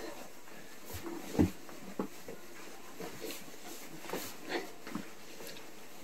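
Feet thump and stamp on a wooden floor.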